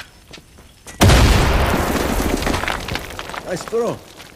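A loud explosion booms and roars, then slowly dies away.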